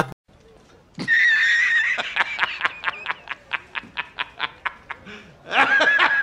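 A middle-aged man laughs loudly and heartily.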